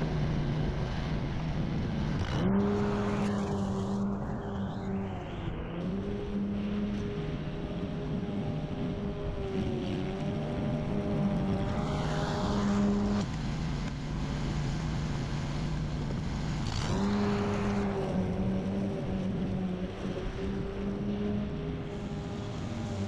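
A petrol lawn mower engine runs steadily nearby, its pitch dipping and rising as it cuts grass.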